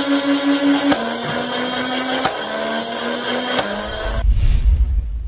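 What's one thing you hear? A toy blaster's motor whirs steadily.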